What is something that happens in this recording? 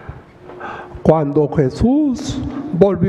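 An elderly man speaks into a microphone in a calm, solemn voice.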